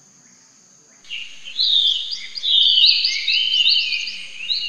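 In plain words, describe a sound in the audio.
A baby monkey squeals in quick, high-pitched chirps close by.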